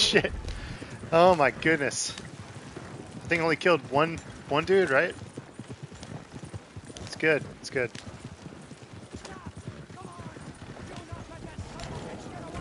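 Wooden wagon wheels rumble and creak over rough ground.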